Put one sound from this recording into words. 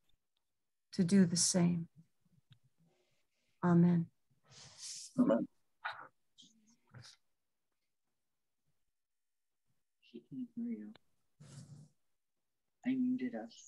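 A middle-aged woman speaks calmly in short phrases over an online call.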